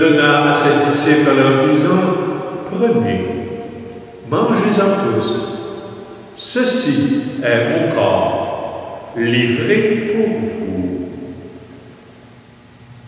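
An elderly man chants solemnly into a microphone, with a slight echo.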